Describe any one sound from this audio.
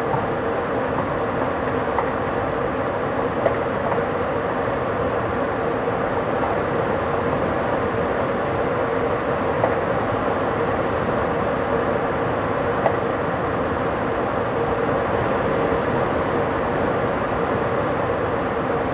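A train rushes along the rails at speed with a steady roar.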